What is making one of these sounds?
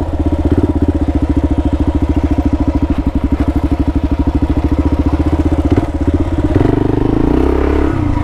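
Motorcycle tyres crunch over dirt and stones.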